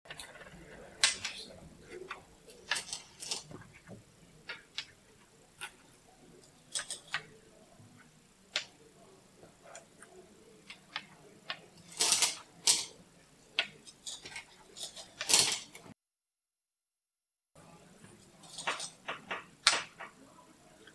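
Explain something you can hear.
Stones click sharply onto a wooden board, one at a time.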